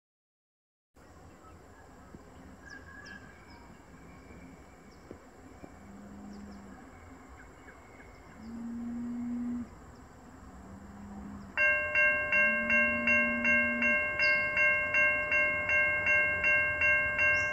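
A diesel train engine rumbles in the distance and slowly draws closer.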